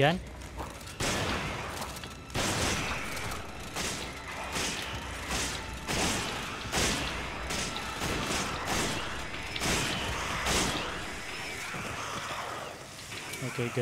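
Gunshots ring out repeatedly.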